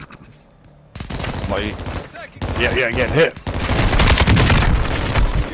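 Rapid gunfire rattles loudly close by.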